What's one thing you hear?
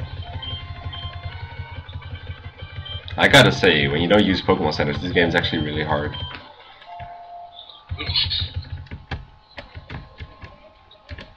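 Chiptune video game music plays.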